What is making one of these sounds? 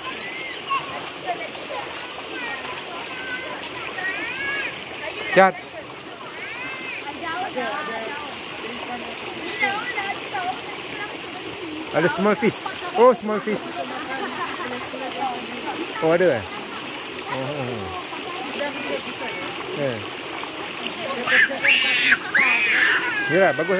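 A stream of water trickles over rocks.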